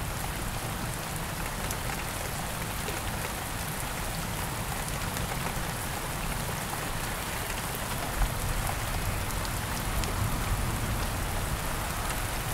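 Thunder rumbles low and far off.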